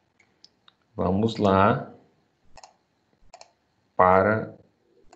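A man speaks in short phrases through an online call.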